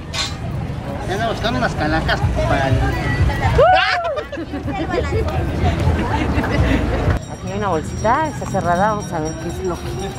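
A man and a woman talk close by.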